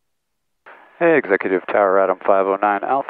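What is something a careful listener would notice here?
A middle-aged man speaks calmly over a headset microphone.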